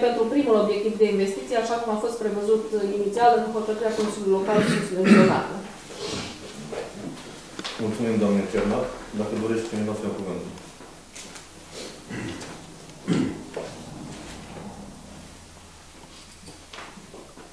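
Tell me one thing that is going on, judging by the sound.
Paper sheets rustle and flip as they are handled.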